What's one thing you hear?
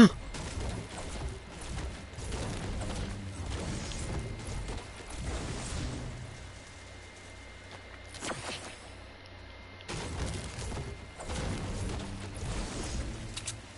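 A pickaxe chops rhythmically into wood.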